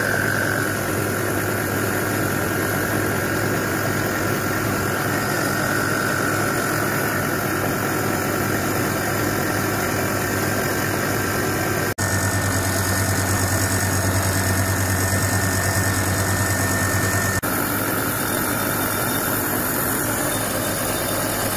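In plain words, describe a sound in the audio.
A milling machine cutter grinds steadily into metal with a loud whine.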